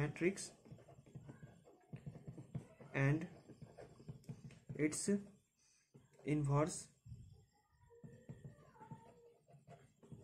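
A marker pen scratches softly across paper.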